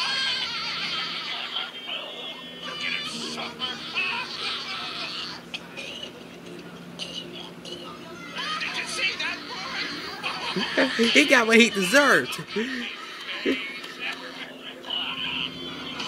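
Two cartoon voices laugh loudly and gleefully.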